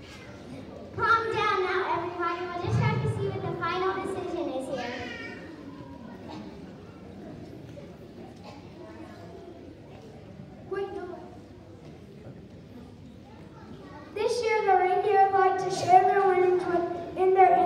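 A choir of children and adults sings together in a large echoing hall.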